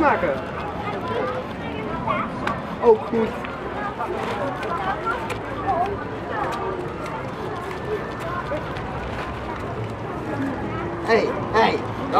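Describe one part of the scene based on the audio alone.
Teenage boys talk and laugh together outdoors.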